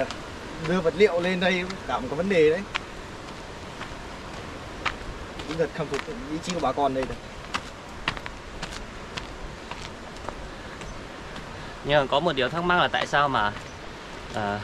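Footsteps crunch on a dirt track.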